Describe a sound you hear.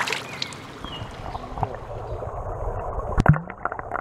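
Water splashes as something drops in.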